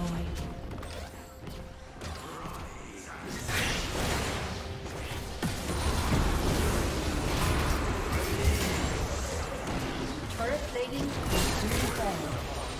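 Game spells and weapon strikes crackle and clash in a busy battle.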